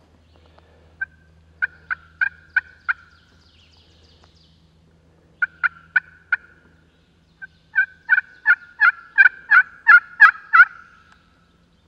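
A hand-held turkey call yelps in sharp, rapid bursts of squeaky notes.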